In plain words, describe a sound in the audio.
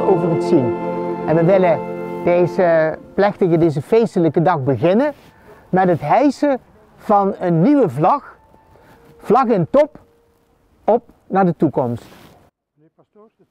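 An elderly man speaks calmly through a microphone outdoors.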